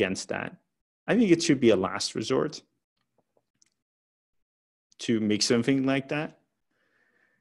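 A young man speaks calmly into a headset microphone, heard through an online call, in short bursts with pauses.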